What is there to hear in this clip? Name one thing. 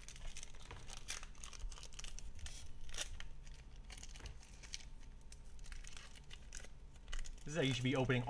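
Playing cards rustle and tap as hands sort through them.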